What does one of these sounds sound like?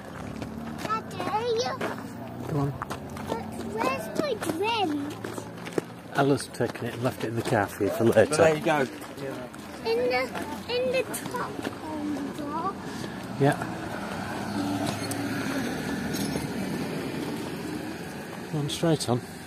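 Several people chat nearby as they walk.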